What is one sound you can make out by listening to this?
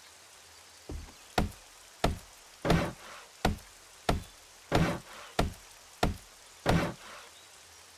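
A heavy club strikes wooden objects in a steady series of dull thuds.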